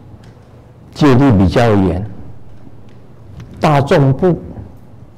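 A man speaks calmly in a low, deep voice through a microphone.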